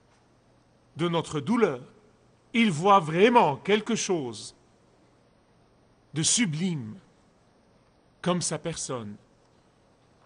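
A man speaks with animation into a microphone, in short emphatic bursts with pauses.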